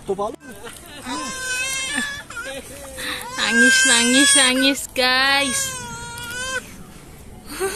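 A baby squeals and laughs loudly nearby.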